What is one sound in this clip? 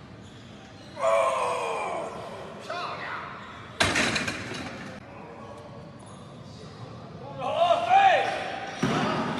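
Men shout encouragement loudly in an echoing hall.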